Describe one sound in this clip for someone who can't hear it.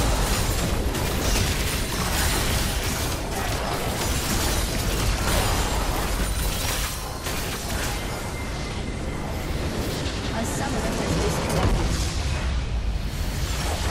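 Game spell effects crash and explode in rapid bursts.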